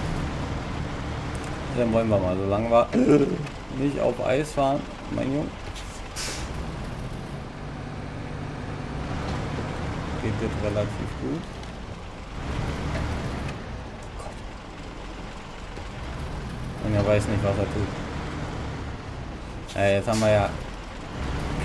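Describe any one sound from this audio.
A heavy truck engine rumbles low and steady.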